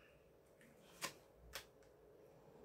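A card taps softly onto a table.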